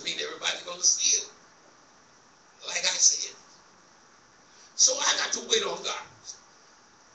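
A man preaches with animation into a microphone, in short bursts with pauses.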